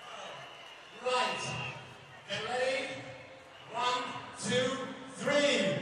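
A young man speaks into a microphone through loudspeakers in a large echoing hall.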